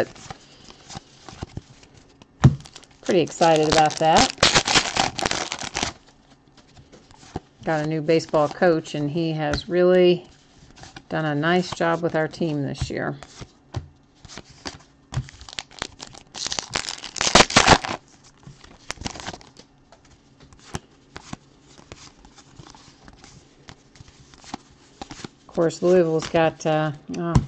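Trading cards flick and shuffle against each other.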